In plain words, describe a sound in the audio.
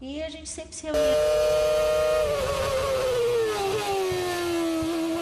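A racing car engine screams at high revs, then its pitch slowly drops.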